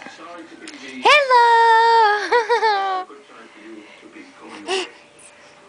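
A baby babbles close by.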